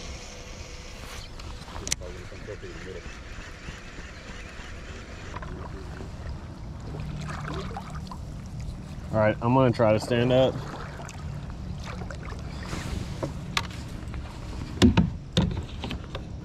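Water laps gently against the side of a kayak.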